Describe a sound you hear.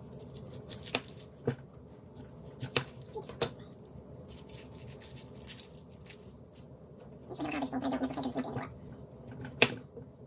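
A knife taps against a cutting board.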